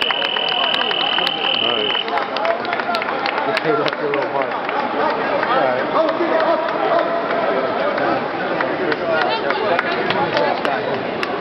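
A crowd talks and calls out in a large echoing hall.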